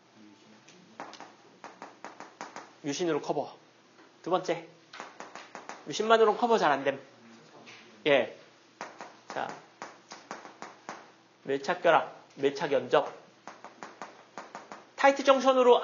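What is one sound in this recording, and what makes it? A young man lectures with animation in a small echoing room.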